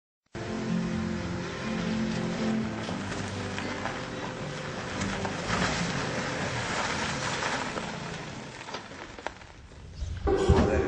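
A car engine hums as the car drives up and slows to a stop.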